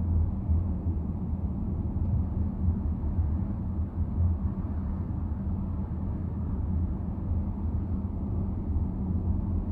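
A car engine hums steadily from inside while driving.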